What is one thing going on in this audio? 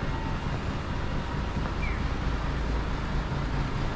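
A bus drives by.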